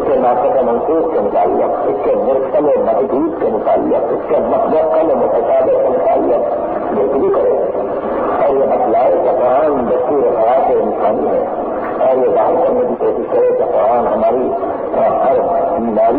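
A man speaks with animation, heard through a muffled old recording.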